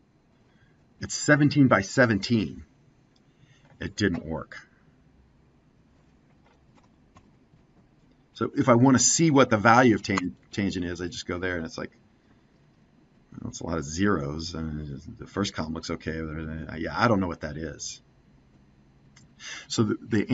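A middle-aged man speaks calmly through a microphone, explaining in short bursts.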